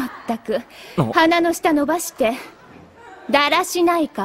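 A young woman speaks teasingly in a high voice.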